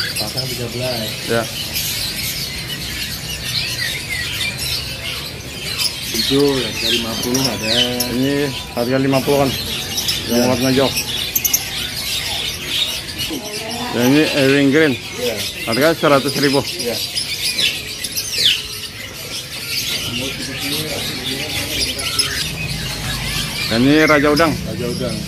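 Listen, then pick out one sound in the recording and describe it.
Small birds chirp and twitter constantly close by.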